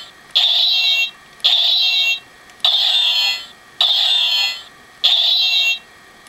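A toy blade gives off repeated bursts of buzzing electronic sound, each about a second long.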